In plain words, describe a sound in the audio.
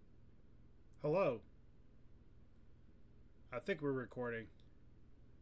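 A young man speaks briefly and animatedly into a close microphone.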